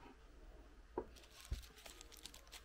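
A hand knocks against a gift package.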